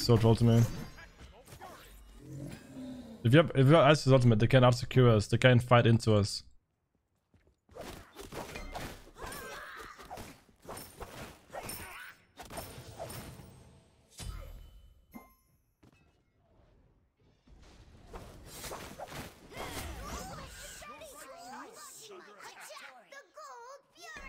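Game sound effects of magic blasts and hits ring out.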